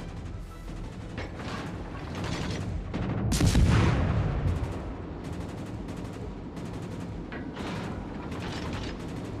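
Water rushes along a moving ship's hull.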